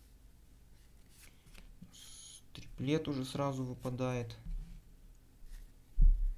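Playing cards slap softly onto a table.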